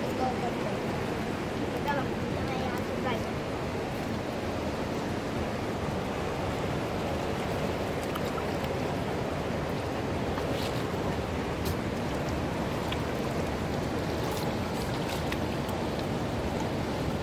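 A river flows and splashes steadily over rocks nearby.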